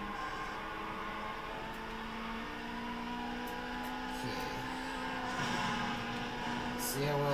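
A racing game's car engine roars steadily through a speaker.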